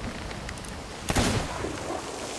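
A cannon fires with a loud boom.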